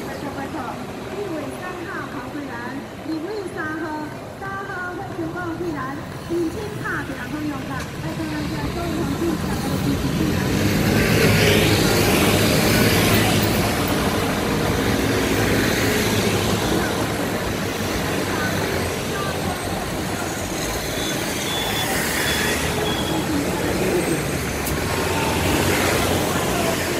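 Traffic hums steadily on a road outdoors.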